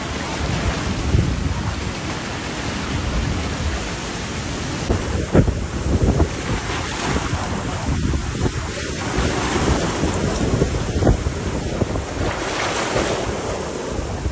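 Floodwater rushes and roars past loudly.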